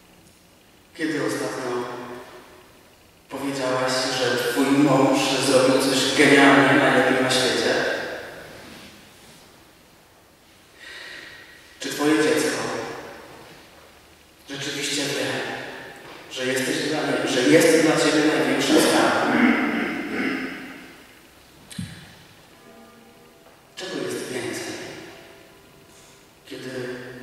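A man speaks calmly into a microphone, with pauses, in a reverberant hall.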